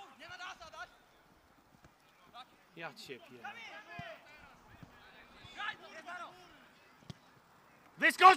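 Young players shout and call to each other across an open outdoor field.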